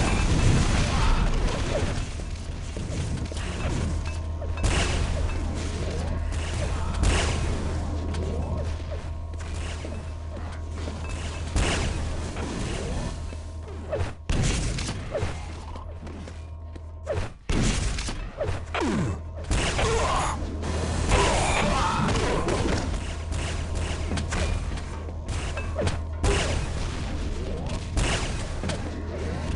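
Gunfire and explosions from a video game crackle and boom.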